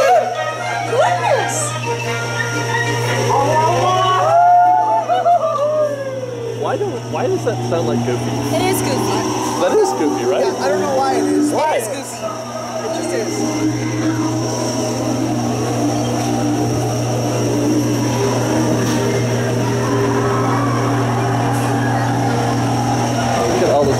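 A ride's motor hums steadily.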